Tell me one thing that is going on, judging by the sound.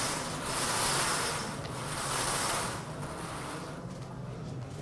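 Balls rattle and tumble inside a spinning lottery drum.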